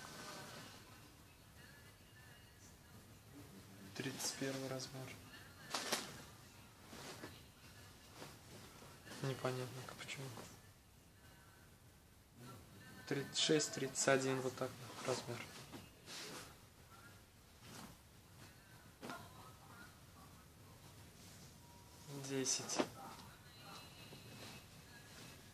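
Clothes rustle and swish as they are handled and laid down.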